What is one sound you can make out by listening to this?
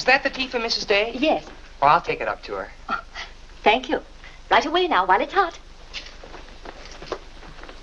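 A young woman answers brightly.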